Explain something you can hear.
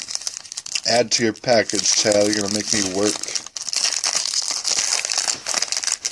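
A foil card pack wrapper is torn open.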